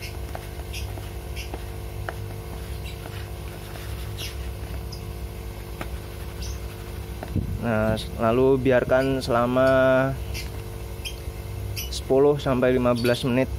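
A hand stirs dry powder in a plastic bowl with a soft rustle.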